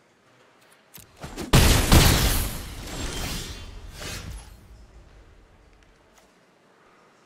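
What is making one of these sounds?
A heavy game impact crashes and rumbles, then fades.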